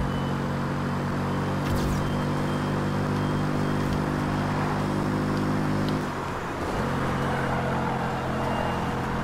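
A sports car engine roars at high speed, dropping briefly as the driver shifts gear.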